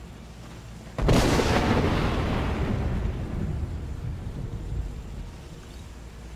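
A magical whoosh bursts out loudly and slowly fades.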